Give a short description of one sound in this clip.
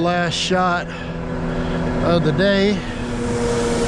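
A man speaks nearby.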